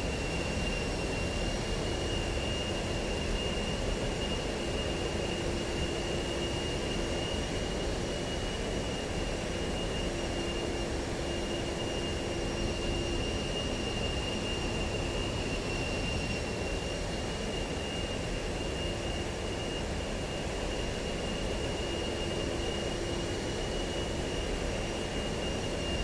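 A jet engine whines and roars steadily.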